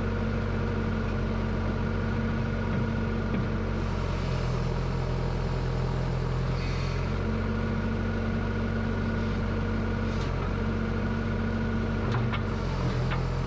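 A diesel excavator engine hums steadily close by.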